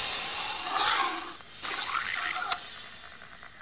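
A man screams loudly.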